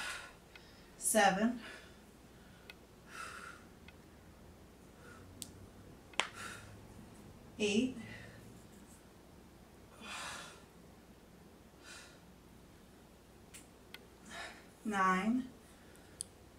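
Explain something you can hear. A woman lets out short strained vocal sounds.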